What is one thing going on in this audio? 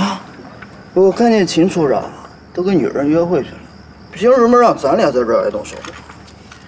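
A second young man answers in a low, grumbling voice.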